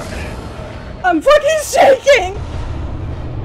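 A young woman squeals and laughs excitedly close to a microphone.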